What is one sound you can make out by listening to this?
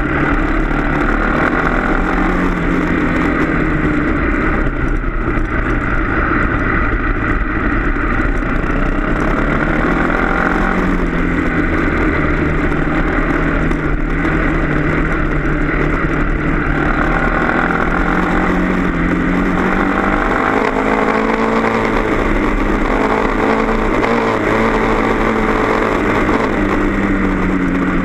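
A motorbike engine revs and hums up close, rising and falling in pitch.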